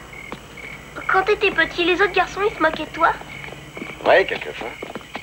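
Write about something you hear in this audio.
A man calls out loudly through a megaphone.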